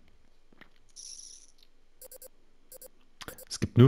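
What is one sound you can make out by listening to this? Soft electronic interface blips sound.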